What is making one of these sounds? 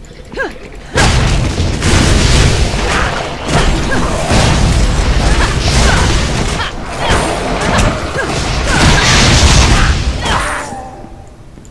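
Spells crackle and explode in rapid bursts.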